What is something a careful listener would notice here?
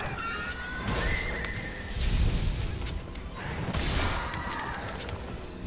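A large beast roars.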